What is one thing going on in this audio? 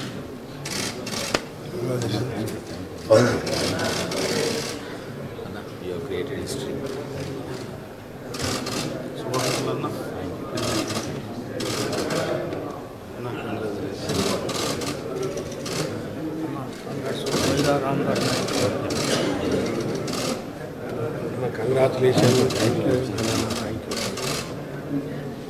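Several men talk and murmur in a large echoing hall.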